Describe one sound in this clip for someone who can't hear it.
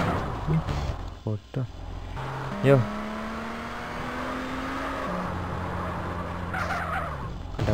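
Tyres screech as a car slides.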